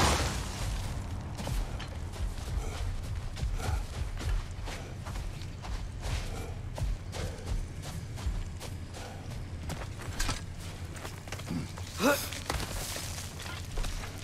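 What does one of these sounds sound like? Heavy footsteps crunch steadily on hard ground.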